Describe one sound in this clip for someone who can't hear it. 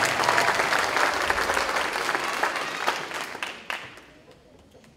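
An audience claps loudly and then stops.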